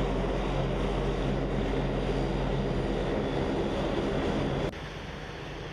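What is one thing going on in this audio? Propeller engines drone loudly close by.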